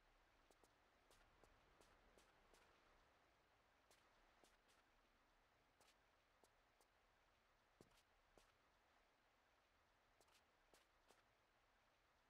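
Footsteps crunch on snow at a steady walking pace.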